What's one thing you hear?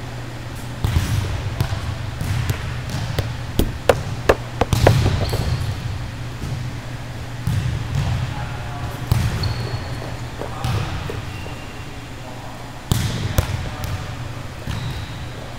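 Volleyballs are struck with sharp slaps in a large echoing hall.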